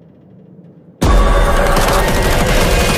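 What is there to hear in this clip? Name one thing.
A young girl yells fiercely.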